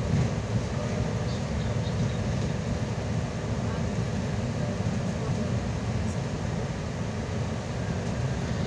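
Tyres hiss and crunch over a snowy road.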